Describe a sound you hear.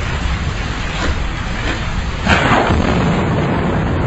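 Thunder rumbles loudly outdoors.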